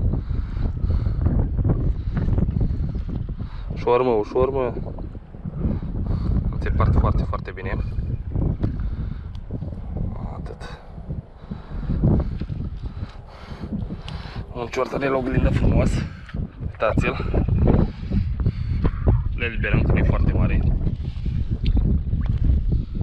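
Small waves lap gently at the water's edge.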